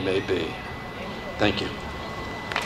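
An elderly man speaks through a loudspeaker outdoors.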